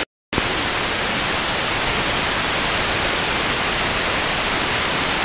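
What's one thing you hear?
Radio static hisses steadily from a receiver.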